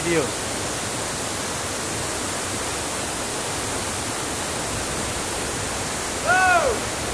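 A man close by calls out briefly.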